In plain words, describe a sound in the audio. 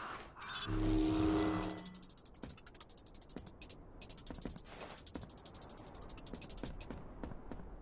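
Rapid game chimes tick as items are picked up.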